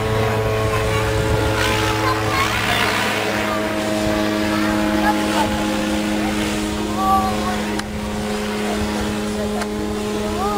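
A small model helicopter whines steadily overhead.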